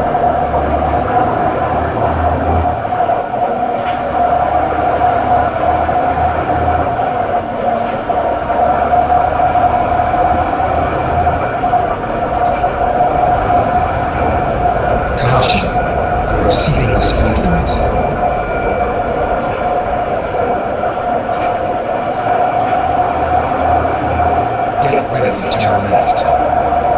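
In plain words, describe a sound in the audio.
A diesel truck engine drones while cruising.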